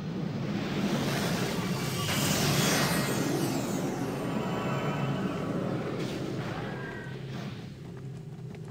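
Magic spells crackle and whoosh in a game battle.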